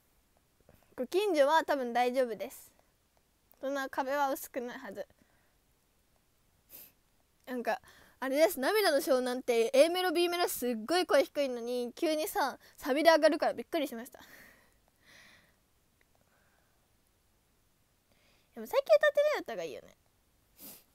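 A young woman talks casually and close up, in short bursts with pauses.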